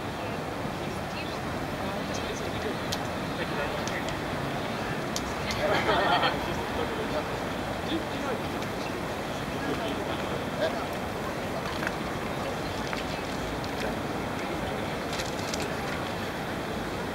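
A crowd murmurs in a wide open space outdoors.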